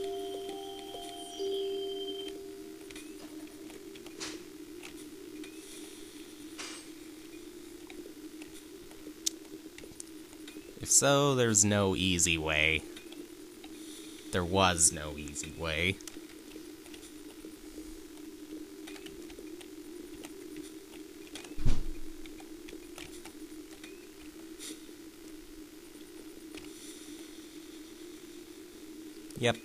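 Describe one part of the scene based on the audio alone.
Soft, steady video game music hums.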